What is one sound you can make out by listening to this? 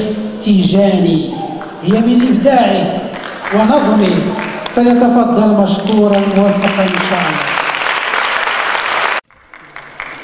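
A man chants in a loud, drawn-out voice through a microphone in an echoing hall.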